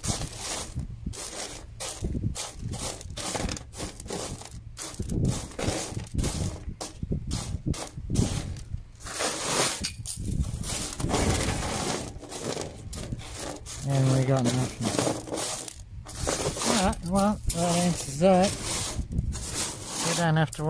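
Small stones rattle and scrape as hands sift through them.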